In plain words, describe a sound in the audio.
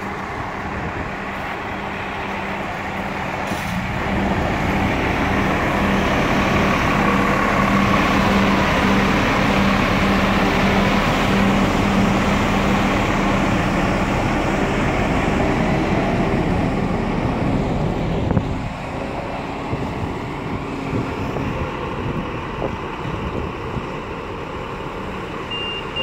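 A bus engine idles with a loud, steady rumble and hum close by.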